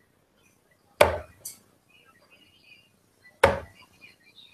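Darts thud into a dartboard one after another.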